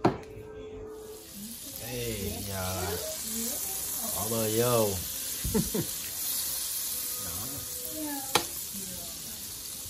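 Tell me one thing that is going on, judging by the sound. Butter sizzles in a hot pan.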